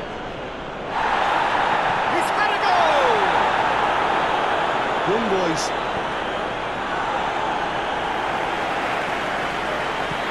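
A stadium crowd roars louder as an attack builds.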